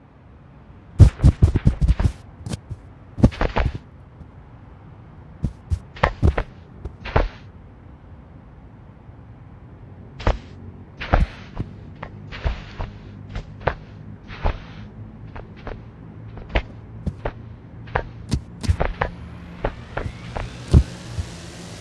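Footsteps thump in quick bursts on a hard floor.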